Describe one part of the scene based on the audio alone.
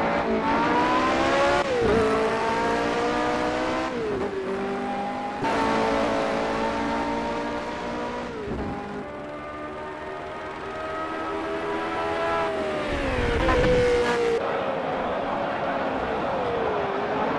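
A racing car engine screams at high revs, rising through the gears and dropping briefly at each gear change.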